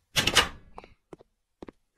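High heels click on a hard floor.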